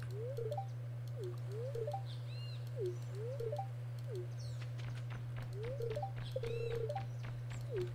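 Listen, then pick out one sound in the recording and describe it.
A short chime plays as a dialogue box opens.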